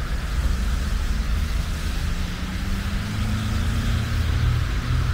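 A van engine drones as it passes nearby.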